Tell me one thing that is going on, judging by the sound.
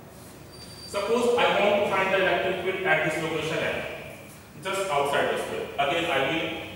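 A man talks calmly in an echoing room.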